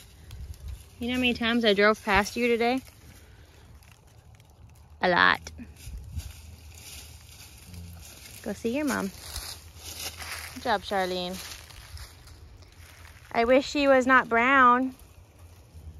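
A young calf bleats in short, high, wavering calls nearby.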